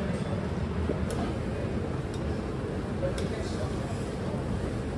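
Water bubbles in a noodle cooker.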